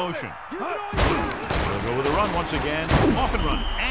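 Football players thud together in a tackle.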